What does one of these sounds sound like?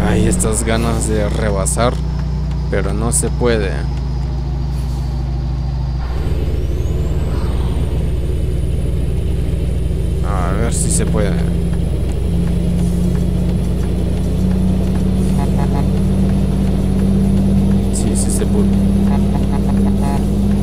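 A heavy bus engine hums steadily.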